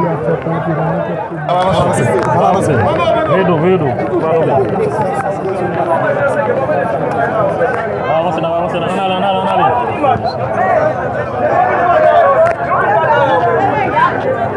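A crowd of men talks loudly over one another outdoors.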